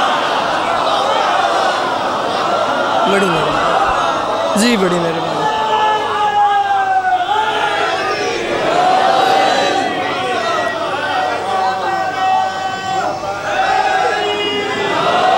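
A large crowd of men chants loudly together in an echoing hall.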